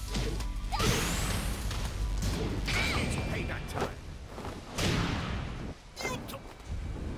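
Punches and kicks land with heavy, crunching thuds.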